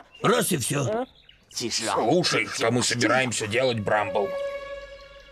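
A man speaks with animation in a deep cartoonish voice.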